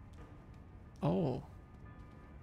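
A young man speaks briefly through a microphone.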